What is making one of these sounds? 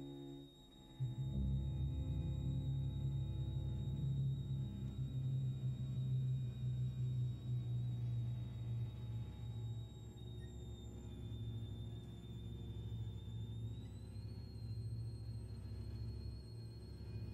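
An orchestra plays a low, sustained passage in a large hall.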